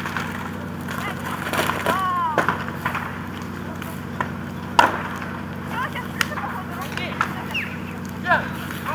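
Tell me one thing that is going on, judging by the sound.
A fire crackles and pops loudly.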